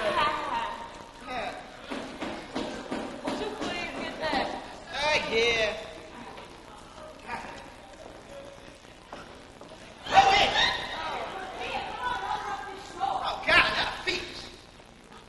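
A man speaks loudly with animation, heard from a distance in an echoing hall.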